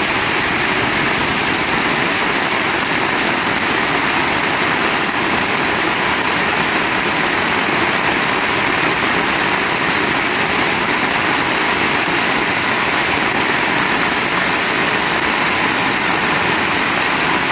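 Rainwater splashes on a wet road.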